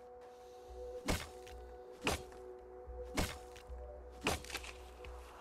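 Short pickup chimes ring out several times.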